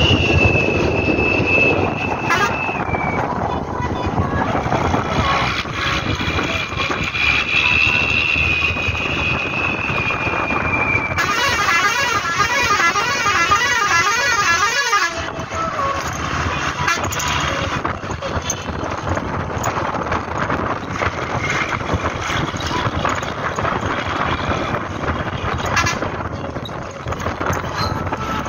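Wind rushes past an open bus window.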